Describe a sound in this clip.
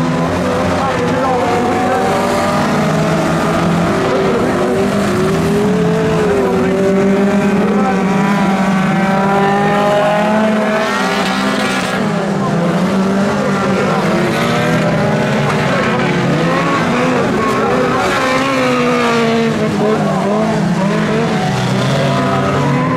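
Tyres skid and scrabble on loose dirt.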